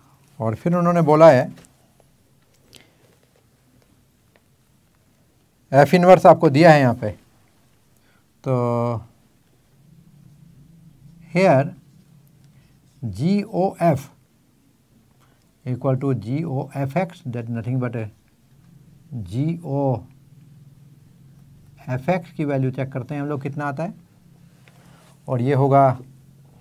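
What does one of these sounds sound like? An elderly man speaks calmly and clearly in short phrases, close to a microphone.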